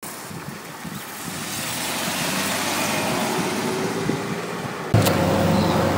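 A car engine hums as a car drives past close by.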